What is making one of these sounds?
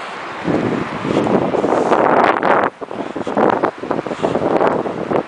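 Wind gusts blow loudly outdoors.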